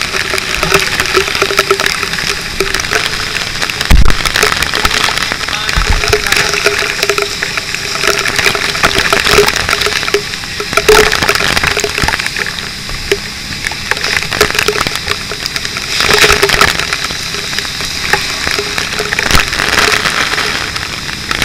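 Water sprays hard from a fire hose.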